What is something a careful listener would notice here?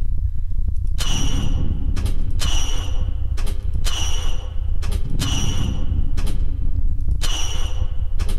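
Heavy machine pistons hiss and clank in a repeating cycle.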